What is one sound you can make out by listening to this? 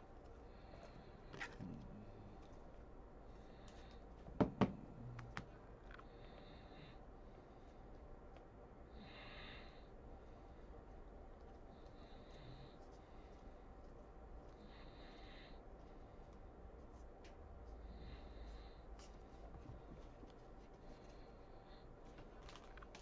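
Trading cards slide and flick against each other as they are flipped through by hand.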